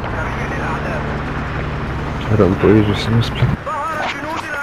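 A tank engine rumbles steadily at low pitch.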